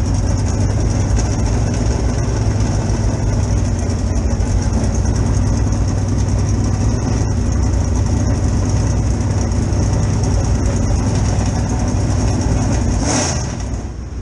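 A race car engine idles with a deep, loud rumble close by.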